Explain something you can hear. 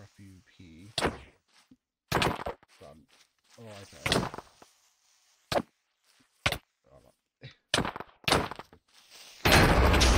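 Sharp sword hits land one after another.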